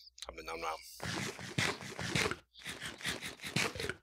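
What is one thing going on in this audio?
Quick crunchy chewing sounds repeat over and over.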